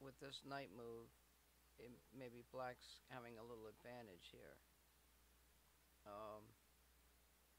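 A young man talks calmly and close into a microphone.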